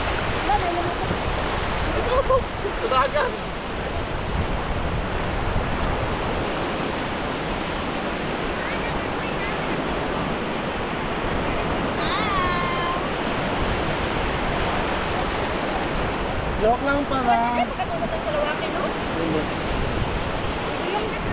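Shallow sea water swishes and laps around wading feet, with waves breaking nearby.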